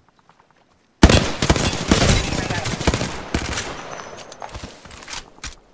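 Rapid gunfire rings out loudly in bursts.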